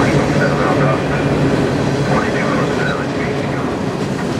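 Steel wheels squeal against the rails.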